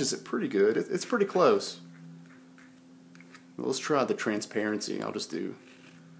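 A palette knife scrapes softly across paper.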